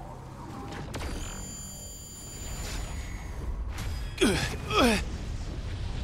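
A sword clashes and slashes with sharp ringing hits.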